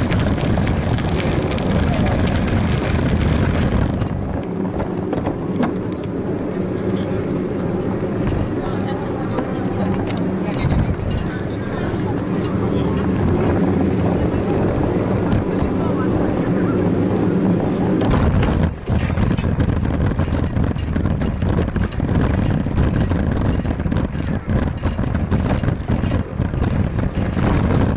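Wheels roll and rattle over pavement.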